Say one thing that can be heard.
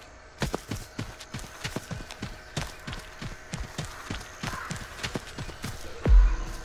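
Quick footsteps run over dirt and grass.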